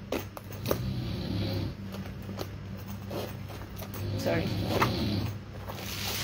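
A zipper is pulled open on a handbag.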